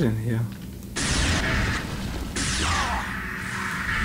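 A laser weapon fires with a sharp electronic zap.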